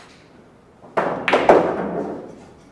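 A cue strikes a pool ball with a sharp clack.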